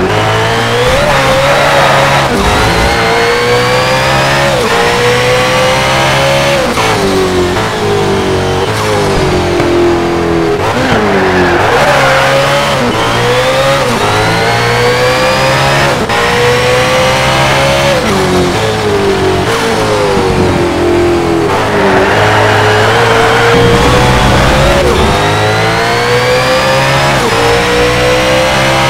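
A racing car engine roars and revs up through the gears, dropping sharply at each shift.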